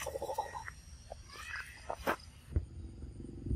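A baby monkey squeals in distress.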